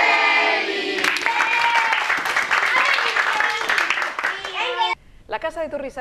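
Children and a woman clap and cheer.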